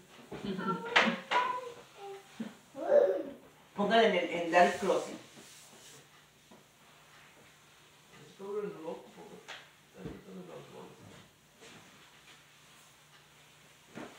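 A cloth scrubs a tiled floor.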